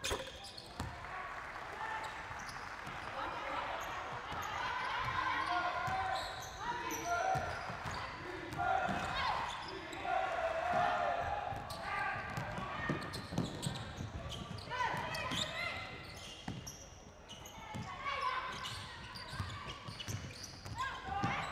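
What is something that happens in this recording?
A basketball bounces on a hard wooden court.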